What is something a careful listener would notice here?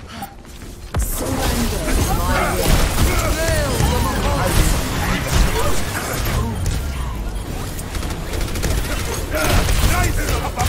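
Energy weapons fire in rapid crackling bursts.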